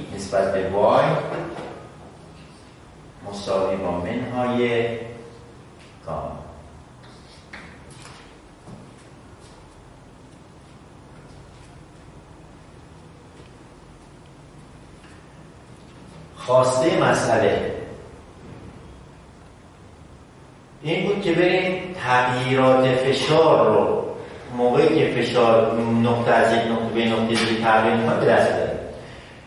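A middle-aged man speaks calmly and clearly, lecturing.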